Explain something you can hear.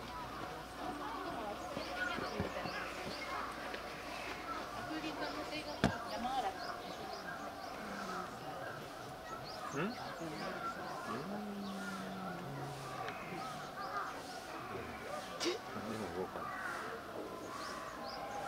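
A crowd of visitors chatters at a distance.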